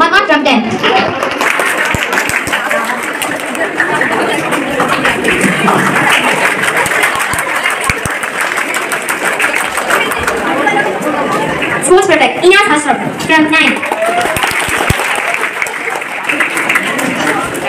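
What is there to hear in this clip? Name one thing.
A crowd of people chatter and murmur.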